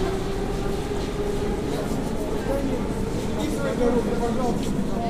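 Men talk with each other nearby, in a large echoing hall.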